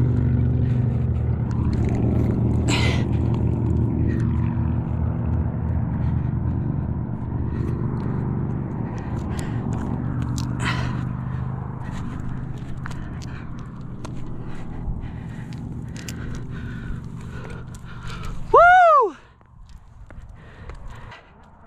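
Hands scrape and pat against rough rock.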